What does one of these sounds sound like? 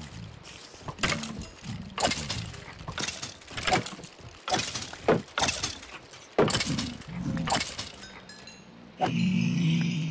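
Sword blows strike creatures again and again with sharp thuds.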